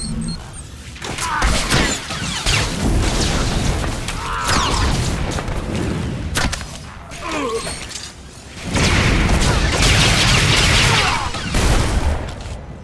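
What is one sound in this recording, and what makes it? Laser blasts crackle and zap in a fight.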